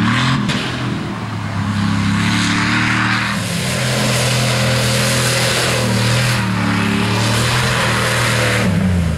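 A truck engine roars loudly, revving up and down.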